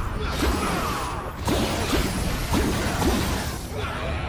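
Gunshots crack in a rapid series.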